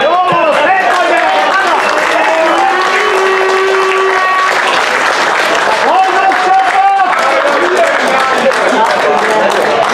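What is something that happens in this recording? A crowd of spectators chatters and shouts nearby outdoors.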